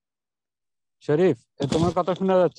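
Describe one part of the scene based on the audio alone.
A man speaks with animation through an online call.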